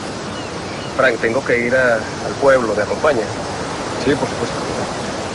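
A man speaks nearby with a serious tone.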